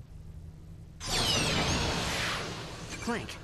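A crate bursts open with a bright, shimmering whoosh.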